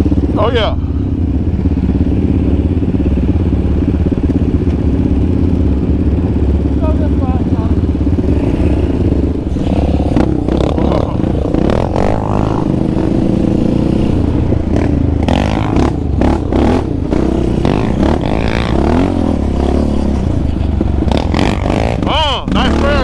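A quad bike engine drones and revs up close.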